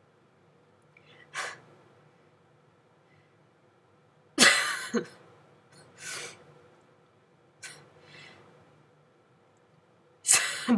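A young woman speaks softly and haltingly, close to a webcam microphone.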